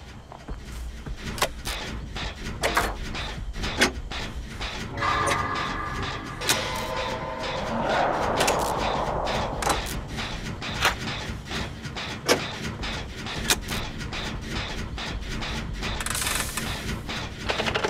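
Metal parts clank and rattle as an engine is worked on by hand.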